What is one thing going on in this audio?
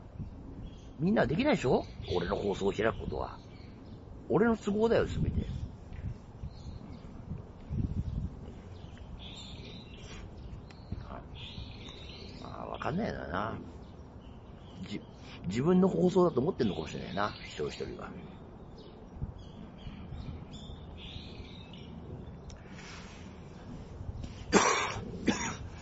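A man talks close to the microphone in short calm bursts.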